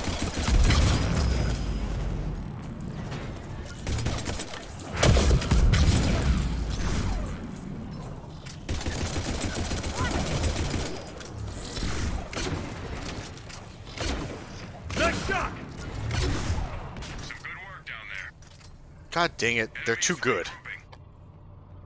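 Gunfire and explosions boom and crackle in loud bursts.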